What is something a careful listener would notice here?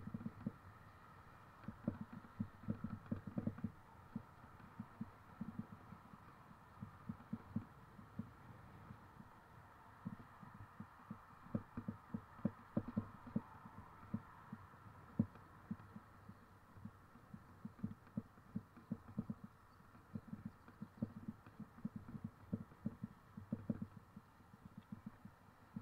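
Footsteps thud steadily on a paved path.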